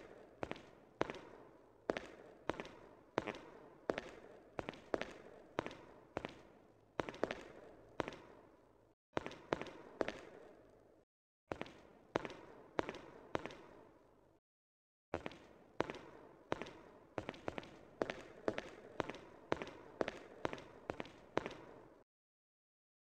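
Footsteps thud steadily on a hard floor, echoing in a large empty room.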